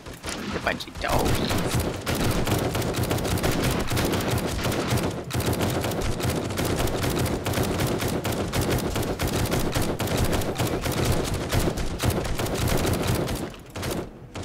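A heavy machine gun fires rapid bursts.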